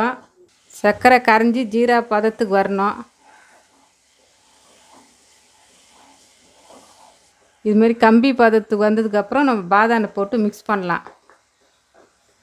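Syrup bubbles and sizzles in a pan.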